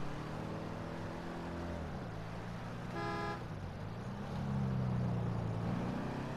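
A car engine hums steadily, its pitch dropping and then rising again as the car drives.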